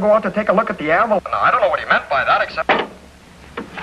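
A middle-aged man talks on a phone with animation.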